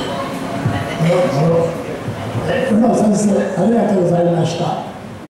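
An elderly man speaks calmly into a microphone, heard through a loudspeaker in an echoing room.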